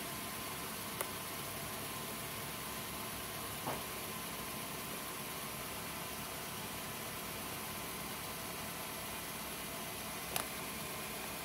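A finger presses small plastic buttons with faint clicks.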